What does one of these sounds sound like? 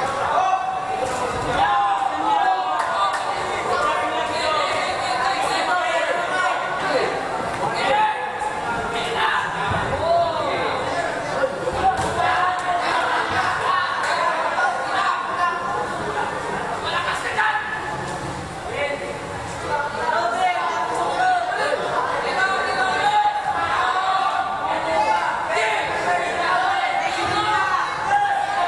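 A crowd of spectators shouts and chatters loudly in an echoing hall.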